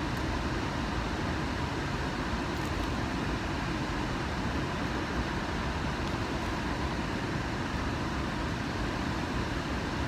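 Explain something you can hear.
Water rushes steadily from a dam spillway.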